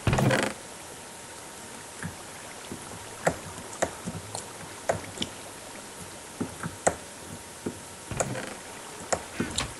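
Short soft clicks sound again and again.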